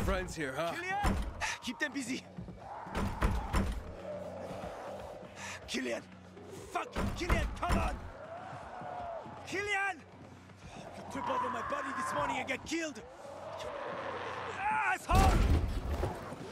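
A man bangs his fist hard on a wooden door.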